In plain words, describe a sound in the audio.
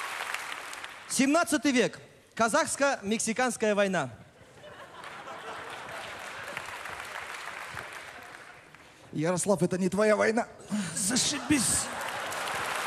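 A young man sings loudly into a microphone.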